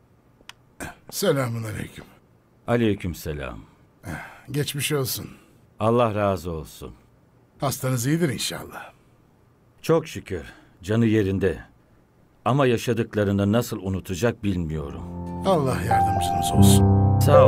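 Another elderly man answers calmly nearby.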